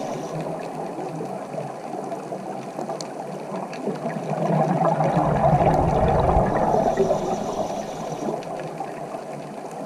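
Scuba air bubbles gurgle and rumble underwater, swelling louder for a few seconds midway.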